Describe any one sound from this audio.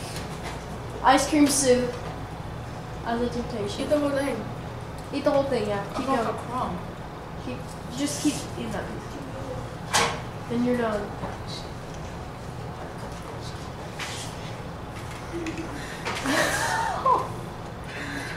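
Young girls talk and laugh nearby.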